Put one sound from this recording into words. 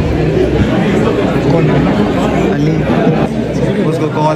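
A crowd of young people chatters loudly in a room.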